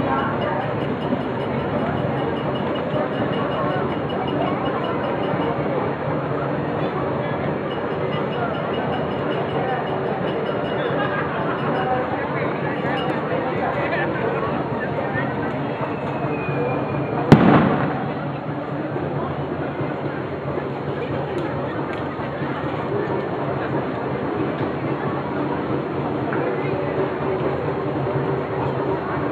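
A crowd murmurs and chatters outdoors throughout.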